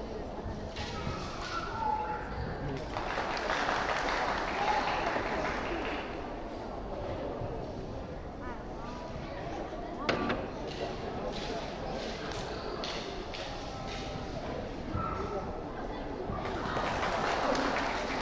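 Bare feet thud and slide on a hard floor.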